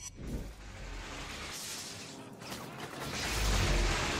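Electric sparks crackle and buzz.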